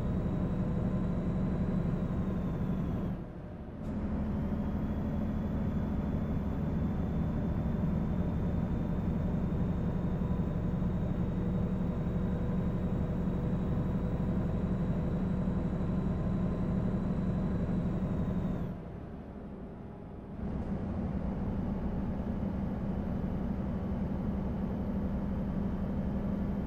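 A truck engine drones steadily, briefly dropping away twice.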